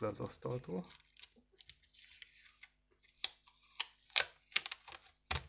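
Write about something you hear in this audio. Clear tape crinkles and tears between fingers.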